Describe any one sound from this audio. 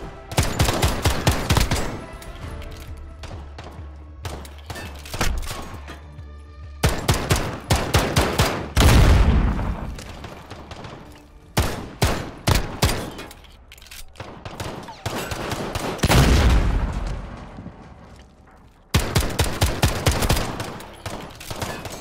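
A pistol fires rapid bursts of loud shots.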